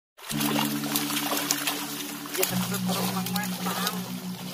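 Water splashes as a net is dragged through a shallow pond.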